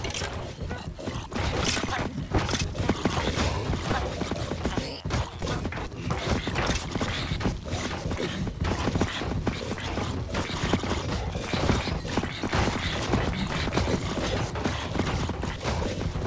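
Heavy blows thud again and again.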